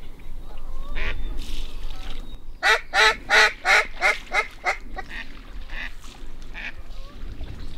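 Birds call loudly in a quick series of honks overhead.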